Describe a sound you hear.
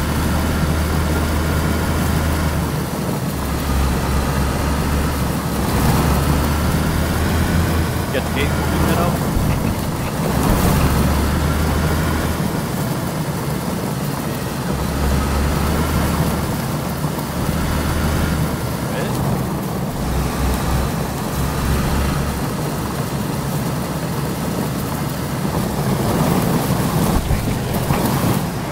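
A vehicle engine rumbles steadily while driving over rough ground.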